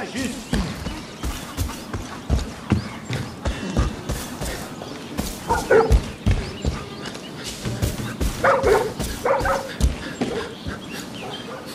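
Footsteps crunch steadily on grass and gravel.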